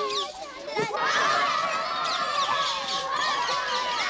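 Young boys laugh loudly.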